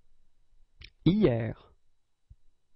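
A young man says a short word calmly, close by.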